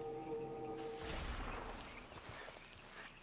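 Leaves and grass rustle as a plant is pulled from the ground.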